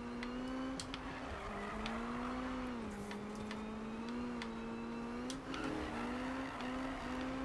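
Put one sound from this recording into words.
Tyres screech on wet asphalt.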